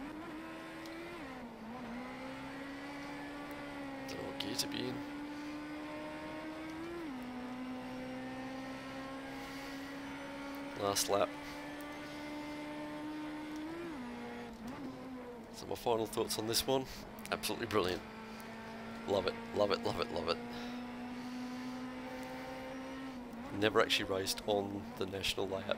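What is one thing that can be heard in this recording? A racing car engine drones steadily, shifting pitch as gears change.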